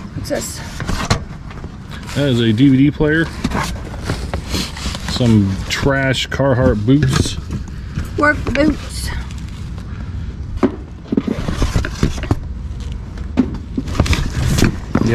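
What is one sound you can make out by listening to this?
Items clatter and rustle in a cardboard box as they are rummaged through.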